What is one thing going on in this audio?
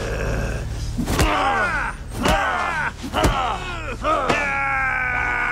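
A man shouts and strains with effort, close by.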